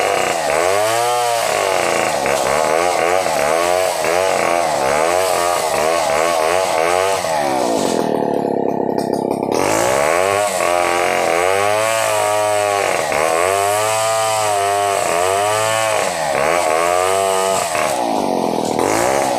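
A chainsaw roars loudly as it cuts through a log, its pitch rising and falling.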